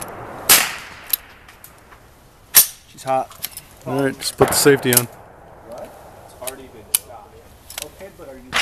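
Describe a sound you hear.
Metal parts of a rifle click and clack as they are handled.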